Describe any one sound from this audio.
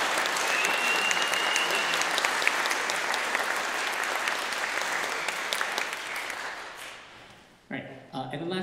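An audience applauds in a large hall and the clapping fades away.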